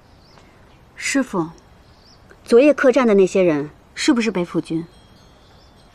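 A young woman speaks calmly and questioningly, close by.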